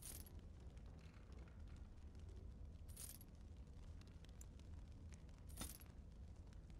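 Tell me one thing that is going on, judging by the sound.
Short interface chimes sound as menu items are picked.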